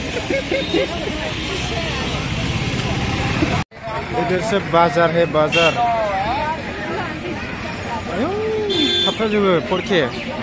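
Men and women chatter all around in a busy outdoor crowd.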